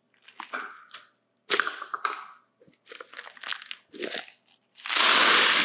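Foil crinkles and rustles.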